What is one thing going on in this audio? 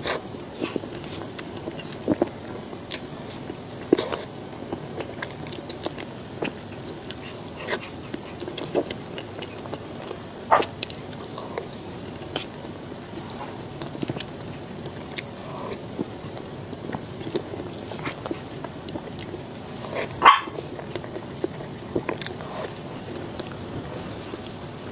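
A young woman chews and slurps soft food close to a microphone.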